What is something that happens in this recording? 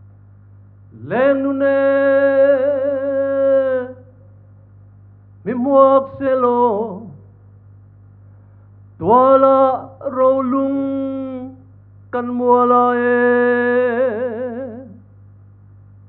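A man chants loudly in long held notes through a microphone.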